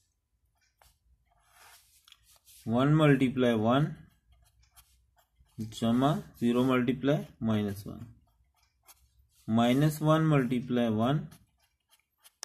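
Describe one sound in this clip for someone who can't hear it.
A pencil scratches softly on paper.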